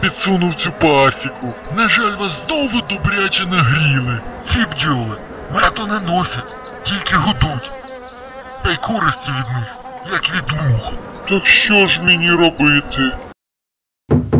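A cartoon man speaks with animation.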